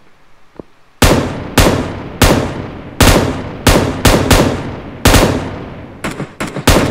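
Loud gunshots crack in quick succession.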